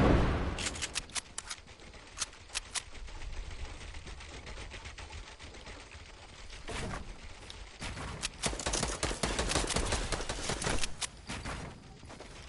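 Wooden building pieces clack and snap into place in quick bursts.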